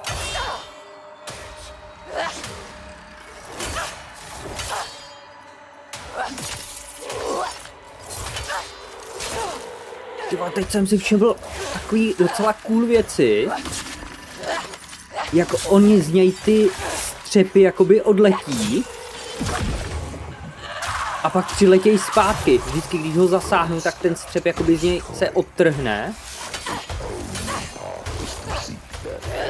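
A sword clashes and clangs against armor.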